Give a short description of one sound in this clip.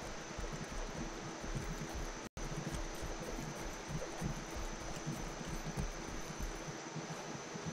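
Footsteps thud softly on grass in a steady rhythm.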